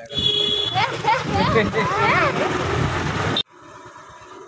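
A boy laughs and calls out excitedly close by.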